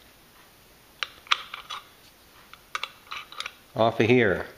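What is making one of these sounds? Small metal parts click and tap together.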